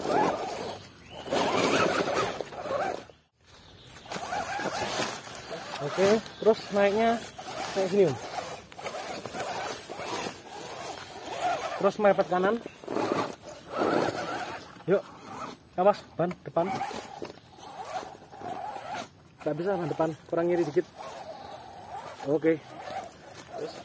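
Rubber tyres scrape and grind over rock.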